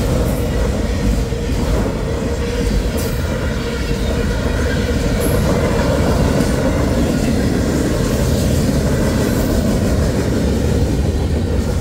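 A freight train rumbles steadily past close by, its wheels clanking on the rails.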